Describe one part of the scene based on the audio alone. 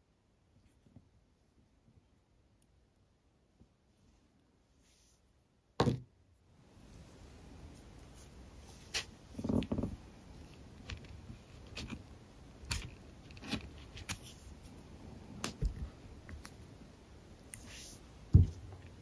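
Small plastic beads click softly as they are pressed into place one by one.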